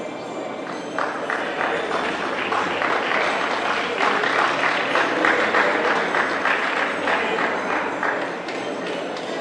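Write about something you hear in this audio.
An audience claps and applauds in a large echoing hall.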